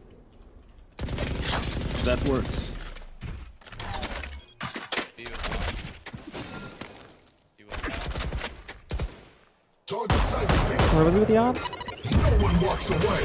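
Gunshots from a video game ring out in quick bursts.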